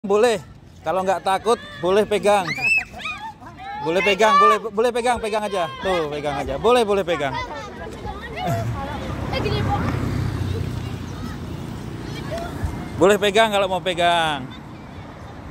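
Young children talk and exclaim excitedly close by.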